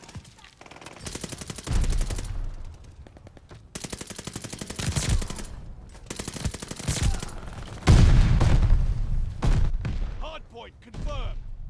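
A submachine gun fires in rapid bursts, close by.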